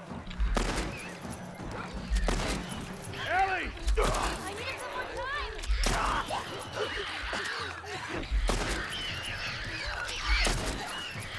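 Gunshots ring out one at a time, with a short echo.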